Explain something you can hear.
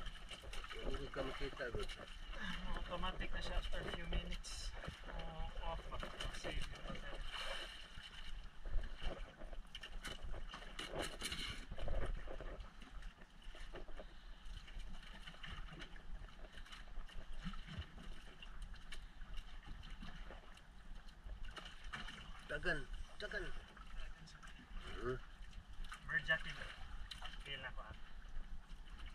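Wind blows across the open water.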